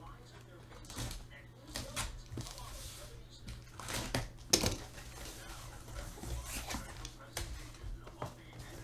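Hands knock and tap against a cardboard box.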